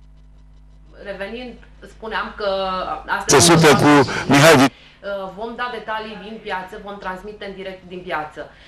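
A woman speaks with animation into a studio microphone.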